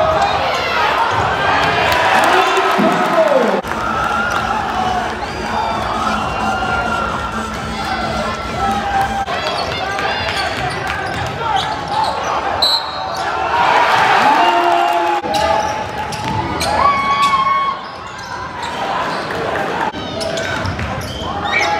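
A crowd cheers and shouts in a large echoing gym.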